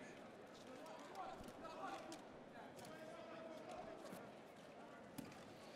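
A handball bounces on a hard court.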